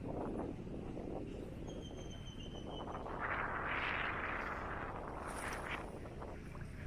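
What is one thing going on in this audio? Bare feet wade and splash through shallow water.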